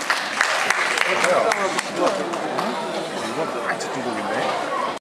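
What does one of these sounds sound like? An audience murmurs and chatters.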